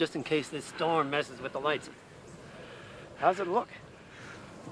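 A man talks cheerfully outdoors.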